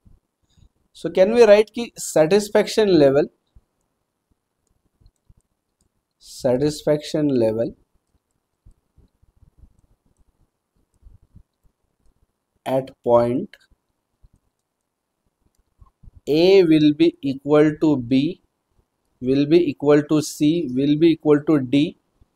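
A young man speaks calmly and clearly into a close microphone, in short bursts with pauses.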